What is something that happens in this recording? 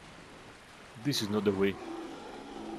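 A creature lets out a harsh, pained groan.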